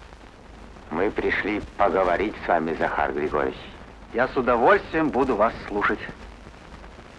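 A man speaks calmly to another man.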